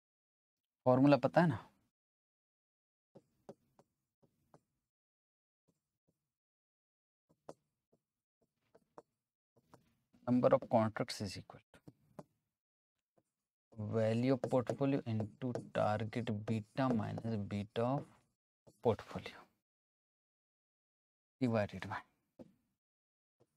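A man speaks calmly and clearly into a close microphone, in bursts with pauses.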